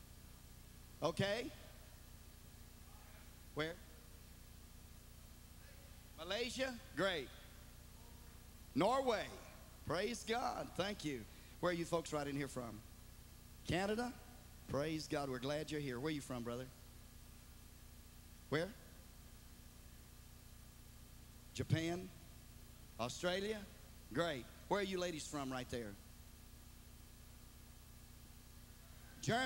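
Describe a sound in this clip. An elderly man preaches with animation through a microphone in a large echoing hall, pausing between phrases.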